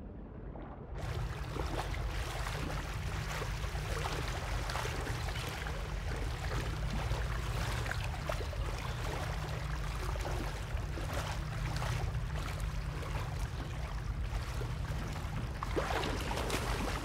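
Footsteps splash steadily through shallow water.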